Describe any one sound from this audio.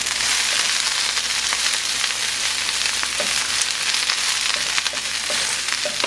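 A wooden spatula scrapes and stirs in a pan.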